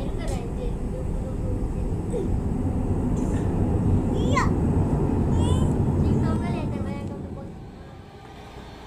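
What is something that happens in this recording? A jet airliner roars loudly as it climbs away, then the roar slowly fades.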